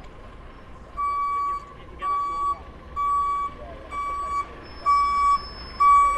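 A truck's reversing alarm beeps in regular bursts.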